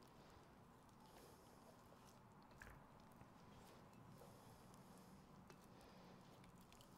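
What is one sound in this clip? Hands knead soft dough in a glass bowl with quiet squishing and tapping.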